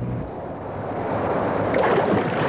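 Waves splash against a rubber boat.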